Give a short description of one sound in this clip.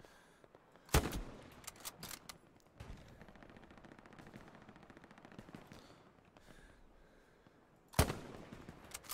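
A rifle fires two loud, sharp shots.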